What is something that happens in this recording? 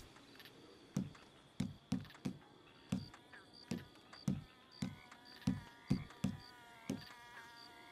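Soft menu clicks tick one after another at an even pace.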